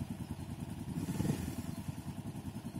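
A motorcycle engine revs briefly.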